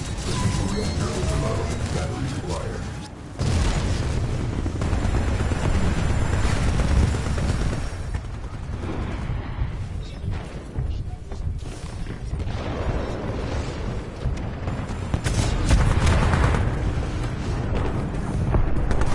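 Rifle shots and heavy thuds ring out from a video game.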